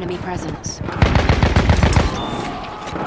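A heavy machine gun fires in rapid bursts.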